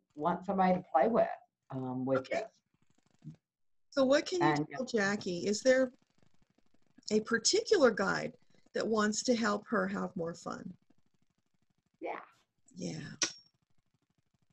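An elderly woman speaks calmly into a microphone, heard as if through an online call.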